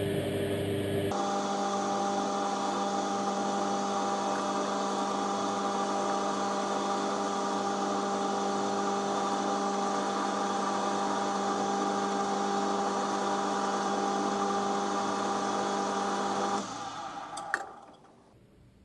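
A lathe motor hums steadily, then winds down and stops.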